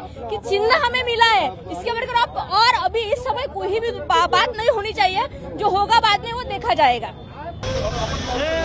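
A young woman speaks with animation into a microphone close by.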